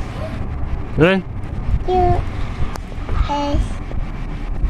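A toddler makes short, high vocal sounds close by.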